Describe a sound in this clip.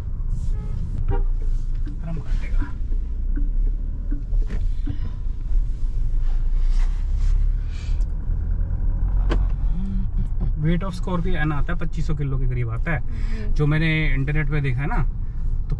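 A car rumbles low as it drives along a road.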